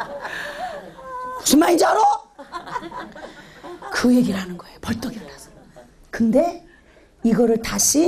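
A middle-aged woman speaks with animation through a microphone in an echoing hall.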